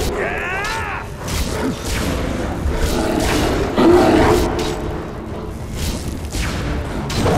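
Magic lightning crackles and hisses in bursts.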